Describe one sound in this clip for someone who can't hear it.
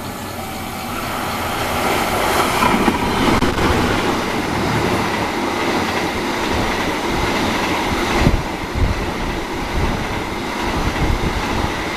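Another train rushes past close by with a loud roar.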